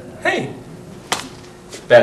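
A hand slaps a young man's face.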